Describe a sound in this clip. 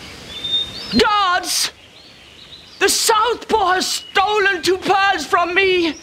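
An elderly woman shouts loudly in alarm.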